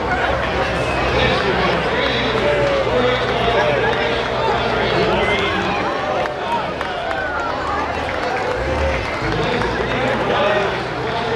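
A large outdoor crowd chatters and cheers.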